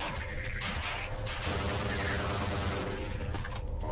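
A rifle fires a burst of rapid shots.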